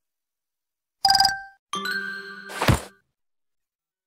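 Video game menu chimes ring out briefly.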